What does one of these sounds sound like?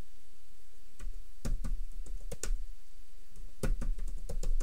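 Keys click on a keyboard.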